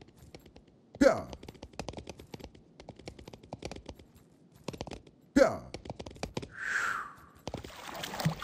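Horse hooves clatter quickly on a hard floor.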